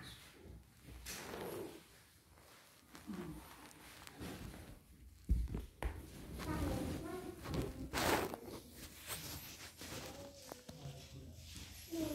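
Fabric rustles as a woman kneels and bows.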